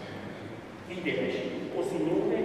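A second man speaks quietly through a microphone.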